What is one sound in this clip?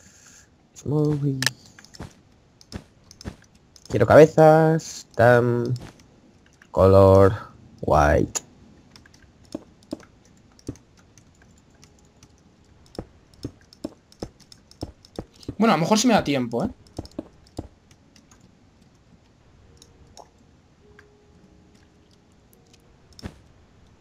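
Game blocks thud softly as they are placed and broken, in short quick clicks.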